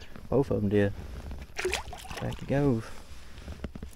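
A fish splashes as it drops into water.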